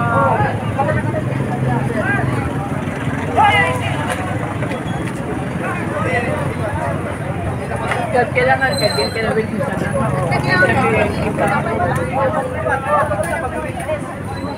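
A crowd of men and women talk excitedly nearby, outdoors.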